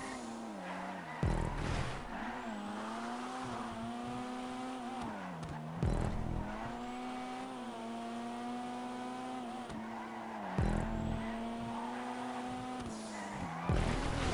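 Tyres screech as a car slides around bends.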